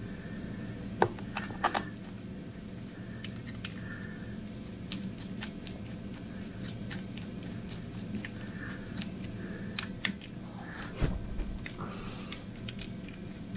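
Metal tools clink and knock against an engine.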